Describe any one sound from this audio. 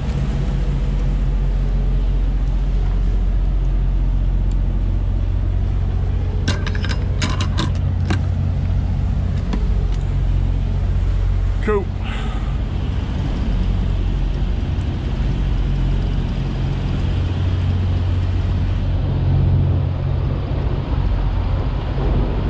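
A refrigeration unit's engine hums steadily close by.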